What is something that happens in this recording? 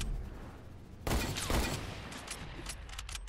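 Gunshots crack loudly in sharp bursts.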